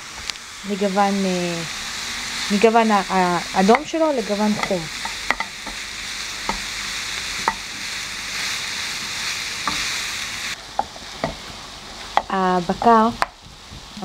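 A wooden spoon scrapes and taps against a pan.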